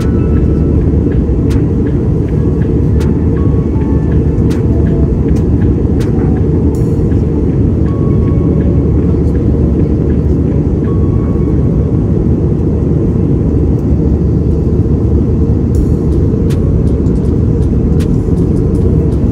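Jet engines roar steadily in a deep, constant drone.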